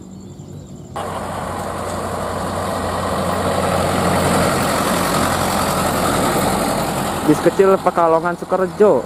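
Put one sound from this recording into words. A bus engine roars as the bus drives past close by.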